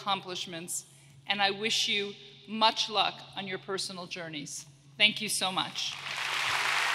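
A woman speaks clearly and with animation through a microphone in a large echoing hall.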